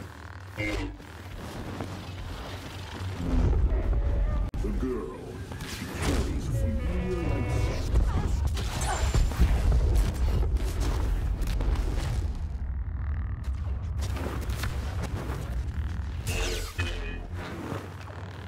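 A lightsaber hums and swishes as it swings.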